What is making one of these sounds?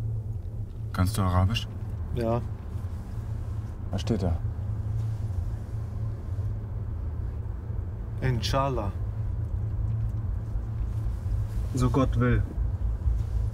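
A young man speaks quietly in short phrases close by.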